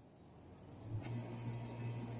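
An air conditioning unit clicks on.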